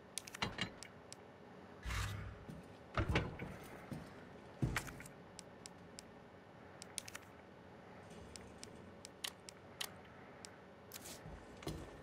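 Menu selections click and tick softly.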